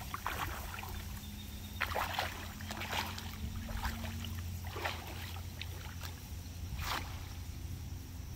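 Water splashes as a man wades through a shallow lake.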